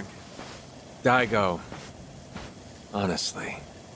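A man speaks wearily, close by.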